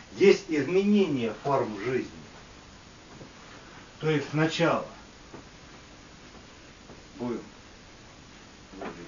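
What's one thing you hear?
A man speaks slowly and clearly, pausing between phrases.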